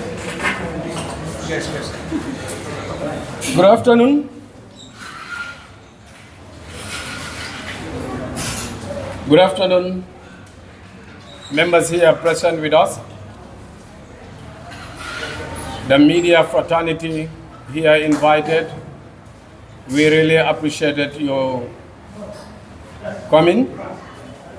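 A man speaks forcefully into a microphone through loudspeakers, in an echoing room.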